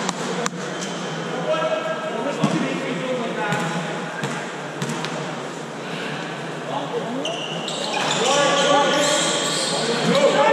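Spectators and players shout and call out across the echoing gym.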